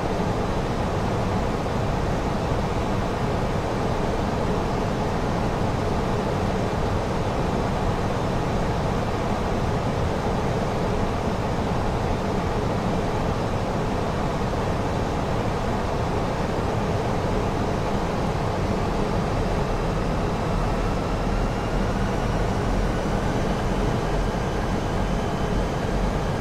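Jet engines roar steadily and loudly.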